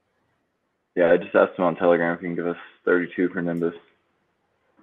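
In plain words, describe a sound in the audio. A man speaks loudly and clearly over an online call.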